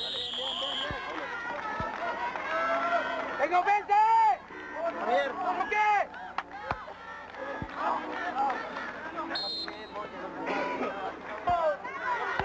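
Young men shout and cheer loudly nearby, outdoors.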